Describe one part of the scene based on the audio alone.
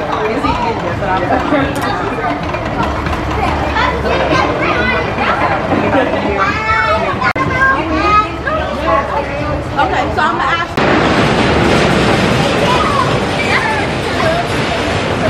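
Roller coaster cars rumble and rattle along the track.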